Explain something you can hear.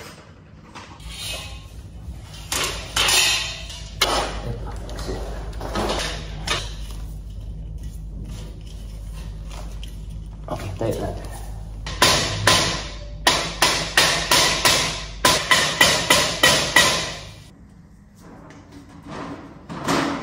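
Metal shelf parts clank and scrape against each other.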